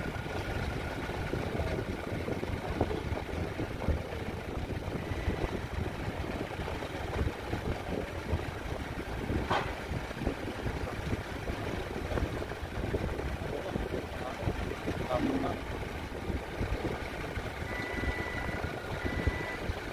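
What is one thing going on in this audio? A forklift engine idles and rumbles nearby.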